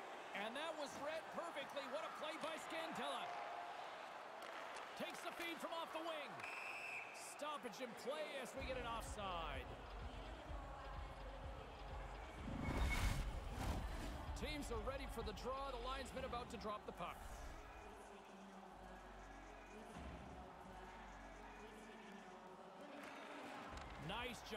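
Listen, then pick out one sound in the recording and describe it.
A crowd murmurs and cheers throughout a large arena.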